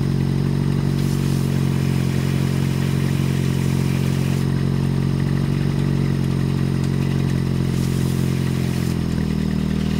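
Water sprays in a hissing jet onto an engine.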